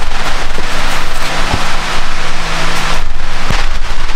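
Metal tools clink under a car.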